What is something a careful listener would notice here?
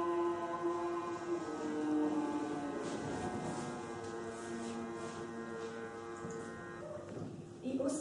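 A group of young people sings together, slow and steady.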